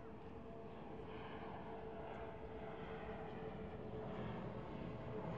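An airplane engine drones steadily overhead.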